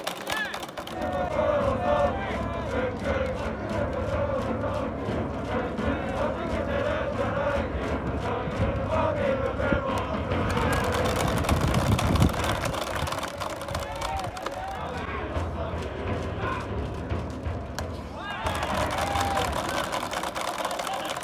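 A crowd cheers and chants in the stands of an open stadium.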